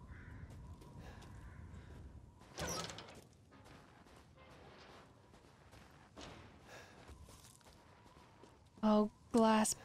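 A young woman talks quietly into a close microphone.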